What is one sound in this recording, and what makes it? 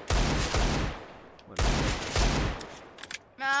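A gun fires loud bursts of shots.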